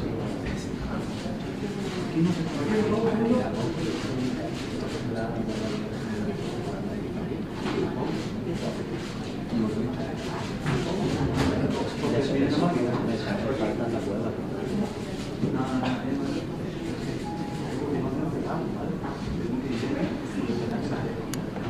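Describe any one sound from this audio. Several men and women chatter in a low murmur nearby.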